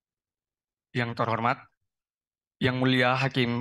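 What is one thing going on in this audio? A young man speaks calmly into a microphone, heard through loudspeakers in a large room.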